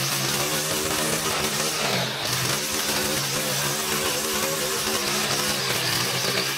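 Grass and weeds are slashed by a trimmer line.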